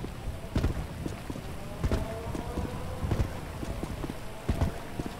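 Footsteps run quickly on a hard road.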